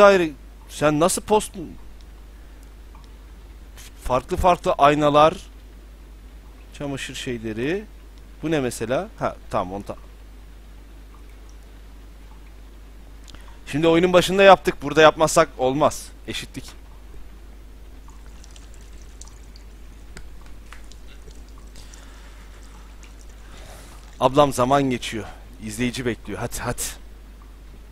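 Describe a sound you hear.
A man talks animatedly into a close microphone, in bursts with pauses.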